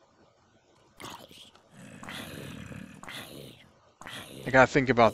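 A sword strikes a zombie with sharp thwacks.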